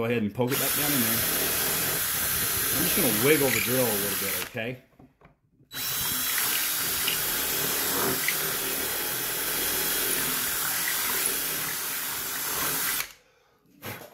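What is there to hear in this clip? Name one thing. An electric drill whirs as it bores into wood, stopping briefly and starting again.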